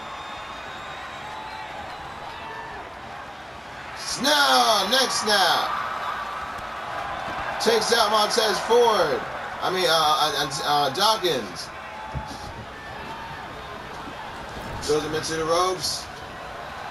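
A large crowd murmurs and cheers steadily in a big arena.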